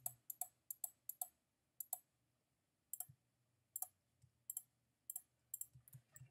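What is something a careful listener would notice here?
Menu clicks tick quickly one after another.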